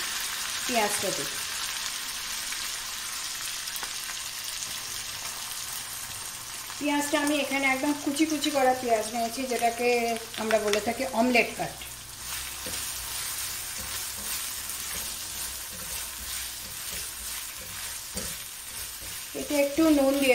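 Oil sizzles and hisses steadily in a hot pan.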